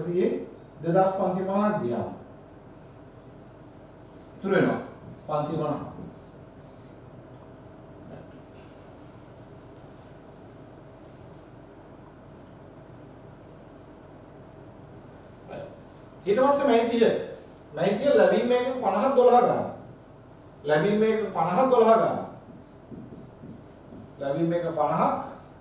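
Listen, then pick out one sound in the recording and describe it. A man explains calmly through a microphone, in short bursts with pauses.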